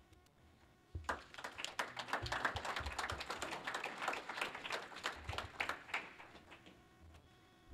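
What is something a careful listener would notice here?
A small group of people applaud.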